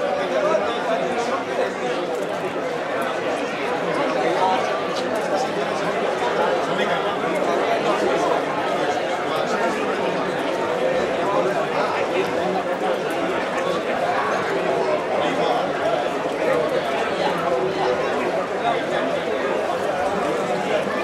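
A large outdoor crowd chatters and shouts loudly.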